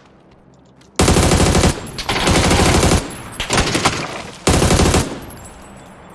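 A rifle fires loud, rapid bursts of gunshots.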